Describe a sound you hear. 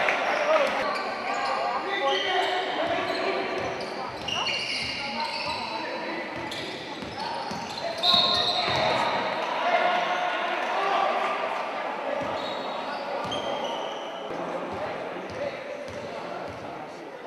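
A crowd of spectators murmurs and cheers in a large echoing hall.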